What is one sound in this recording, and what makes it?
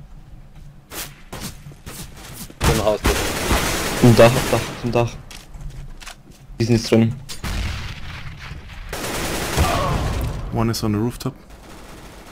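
Gunshots crack and echo.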